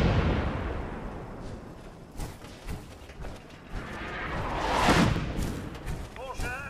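A large explosion booms and rumbles.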